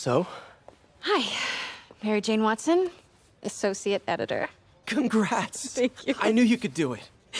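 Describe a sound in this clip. A young woman speaks warmly and happily.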